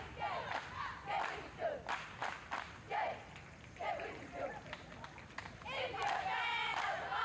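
Young women chant and cheer loudly outdoors.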